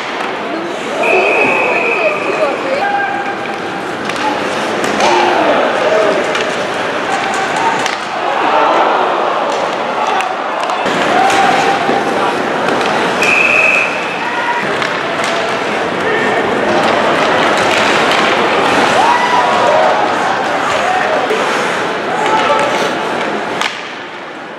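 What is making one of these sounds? Sticks clack against a puck.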